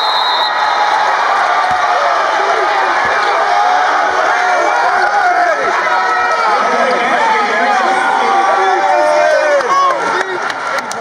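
Young men shout and cheer with excitement in a large echoing arena.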